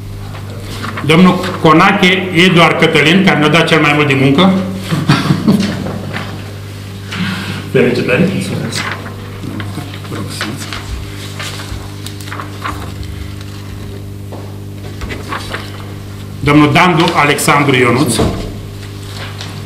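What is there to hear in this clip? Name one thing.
A man speaks through a microphone, reading out in short bursts with pauses.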